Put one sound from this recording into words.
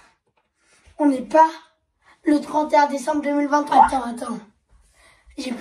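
A boy sings loudly and with feeling, close by.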